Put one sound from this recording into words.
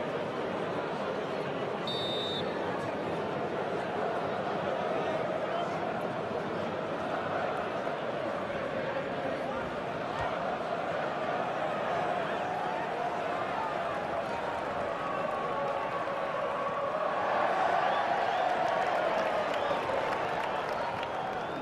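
A large crowd roars steadily, swelling near the end.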